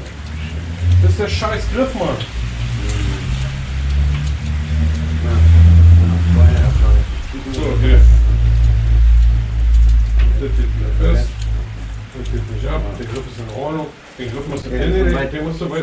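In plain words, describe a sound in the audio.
A young man answers nearby.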